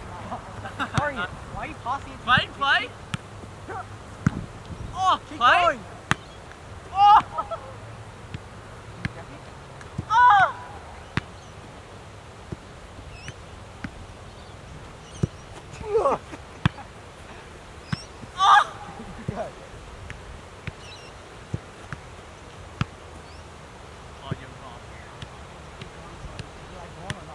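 A football thuds as it is kicked on grass.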